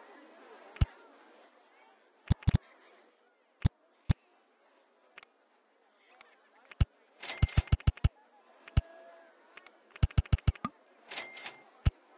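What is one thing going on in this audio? Sharp game clicks sound in quick bursts.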